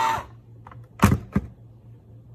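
A metal can lid clicks free of a can opener.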